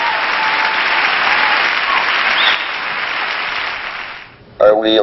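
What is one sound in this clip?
A large crowd applauds and cheers loudly in a big hall.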